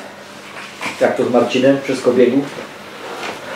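A man talks calmly at close range.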